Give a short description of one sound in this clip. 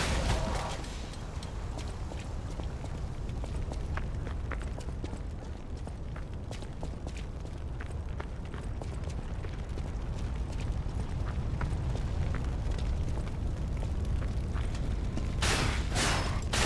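Footsteps clack on stone.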